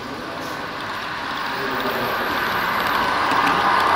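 A small electric model locomotive hums as it approaches.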